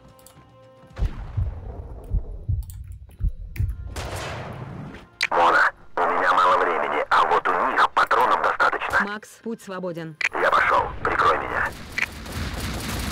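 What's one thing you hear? Gunshots crack sharply, one after another.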